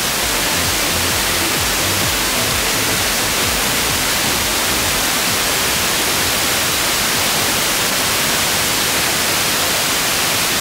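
A radio hisses with loud, steady static.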